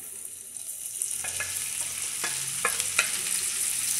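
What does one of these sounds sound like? Mushrooms tumble into a sizzling pan.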